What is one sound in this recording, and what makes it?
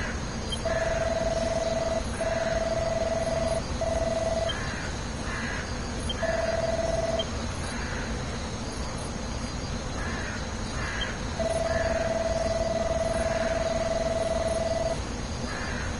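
Soft electronic blips chirp rapidly as game dialogue prints out.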